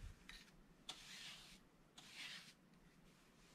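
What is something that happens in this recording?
A wide brush sweeps softly across paper.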